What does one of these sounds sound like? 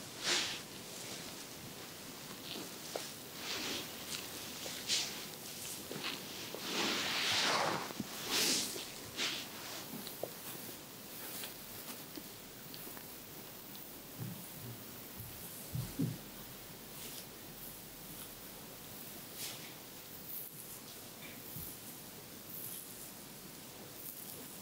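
Fingers softly rub and rustle through hair close by.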